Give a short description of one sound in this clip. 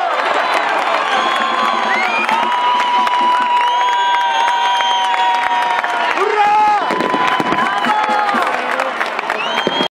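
A crowd cheers and whistles loudly outdoors.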